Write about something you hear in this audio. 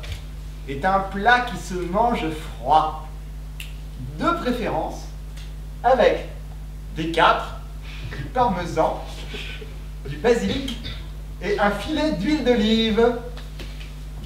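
A young man speaks with animation in a large hall.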